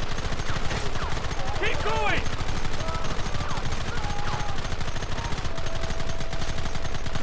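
A Gatling gun fires in rapid bursts.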